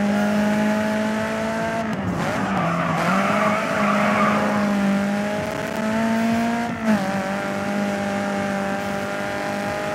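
A racing car engine roars at high revs, shifting gears.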